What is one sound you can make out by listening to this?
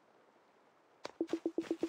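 Short electronic blips tick quickly in a rapid series.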